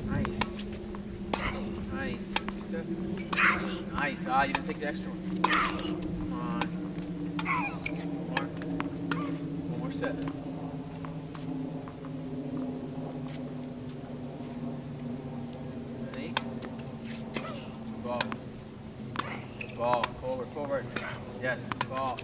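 A tennis ball is struck sharply with a racket, again and again.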